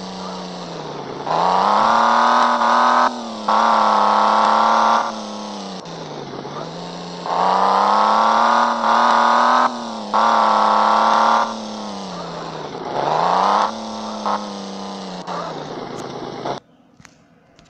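A sports car engine revs up and down repeatedly.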